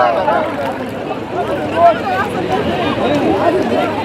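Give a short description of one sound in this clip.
Water splashes gently around people wading.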